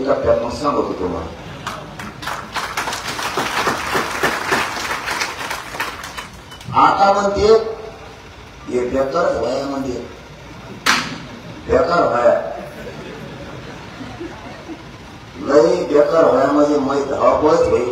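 A young man speaks loudly and forcefully into a microphone through a loudspeaker.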